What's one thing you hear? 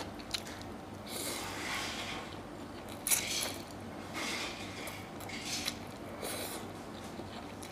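A woman slurps noodles loudly close by.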